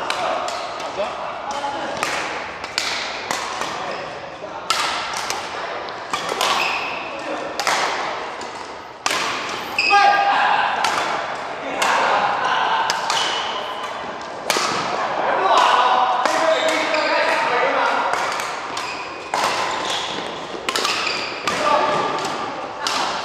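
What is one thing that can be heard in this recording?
Badminton rackets hit a shuttlecock with sharp pops, echoing in a large hall.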